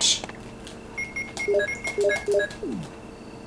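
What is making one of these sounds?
Short electronic beeps sound in quick succession.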